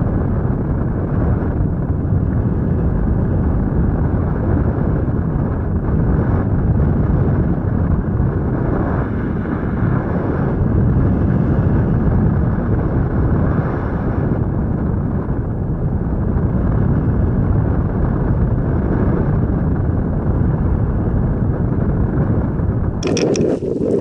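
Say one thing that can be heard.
Wind roars steadily and loudly past a hang glider in flight.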